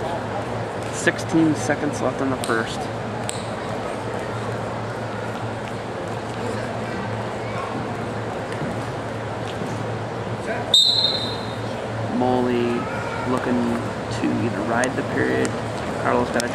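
Spectators shout and cheer from the stands.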